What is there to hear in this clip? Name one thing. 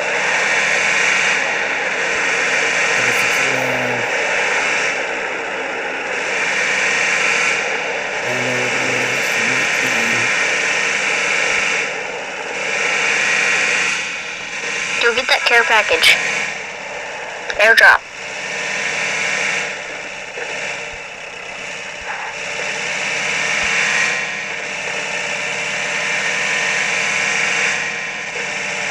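A jeep engine hums steadily as it drives over rough ground.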